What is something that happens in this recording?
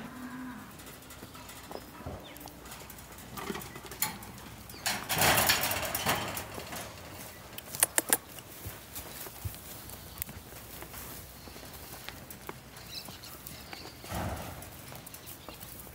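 Donkeys' hooves shuffle and rustle on dry straw.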